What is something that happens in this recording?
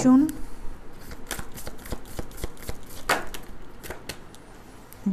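Playing cards flick and tap as they are shuffled and dealt.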